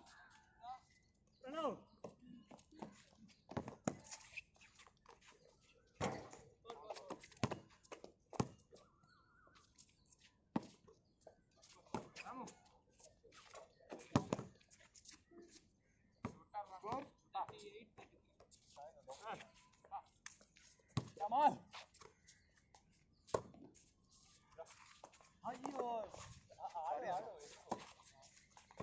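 A basketball bounces on a hard outdoor court.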